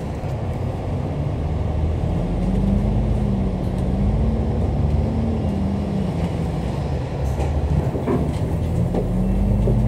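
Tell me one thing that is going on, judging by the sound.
City traffic roars in the street.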